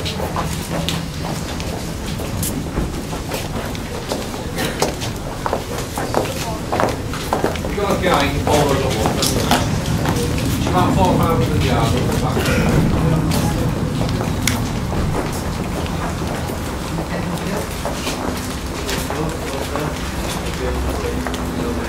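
Footsteps shuffle and tap.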